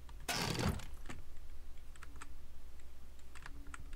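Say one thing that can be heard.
A wooden cabinet door creaks open.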